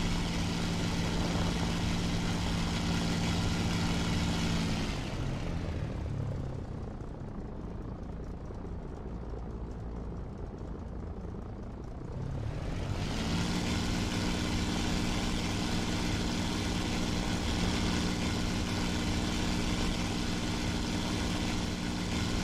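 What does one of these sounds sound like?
A propeller plane's engine drones loudly, drops away for a few seconds, then roars back.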